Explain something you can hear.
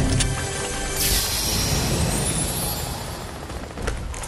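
A treasure chest hums and chimes as it opens.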